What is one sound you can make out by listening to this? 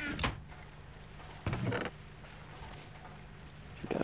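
A wooden chest creaks open.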